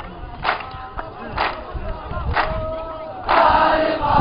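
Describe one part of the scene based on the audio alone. A man's voice calls out a chant close by.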